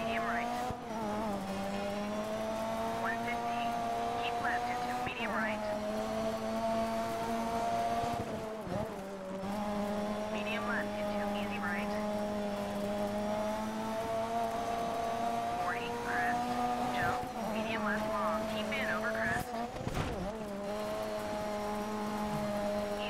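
A rally car engine roars steadily at high revs, dropping briefly between gear shifts.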